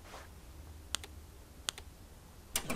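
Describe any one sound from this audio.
Phone buttons click.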